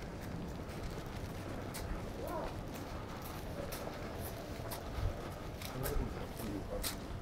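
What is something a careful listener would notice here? Footsteps tap along a pavement.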